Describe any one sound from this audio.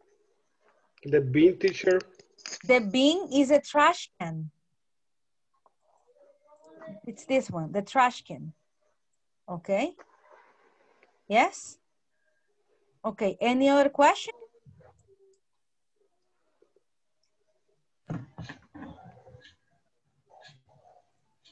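A woman speaks clearly and slowly through a microphone, reading out and explaining.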